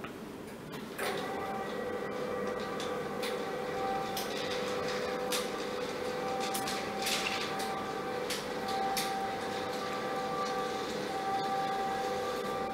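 An electric motor hums steadily.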